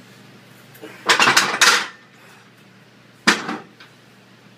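Heavy dumbbells clank onto a metal rack.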